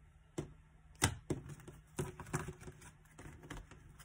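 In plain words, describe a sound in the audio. A playing card slides and taps onto a hard surface.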